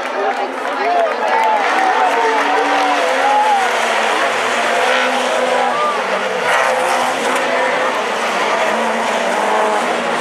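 Race car engines roar as cars speed past on a track.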